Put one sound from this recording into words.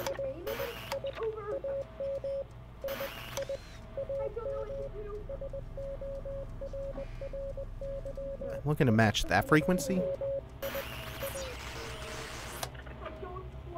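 A radio hisses with static.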